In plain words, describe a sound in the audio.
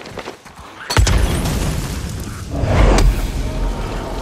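A fire bursts into flames with a loud whoosh.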